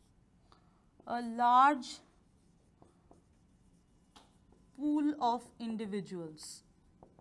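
A woman speaks calmly, as if lecturing.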